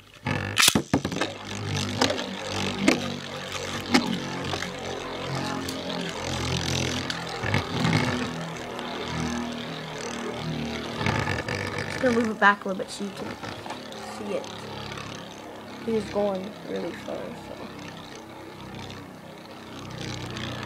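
Spinning tops clash and clatter against each other.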